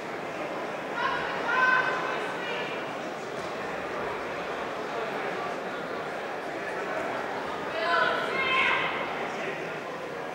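Spectators shout loudly in short bursts.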